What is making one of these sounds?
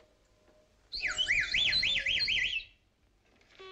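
A young girl blows a toy whistle with a rapid warbling trill.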